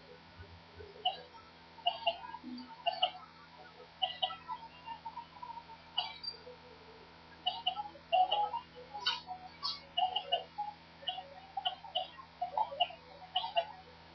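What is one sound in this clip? Short cartoonish thumps and pops sound again and again.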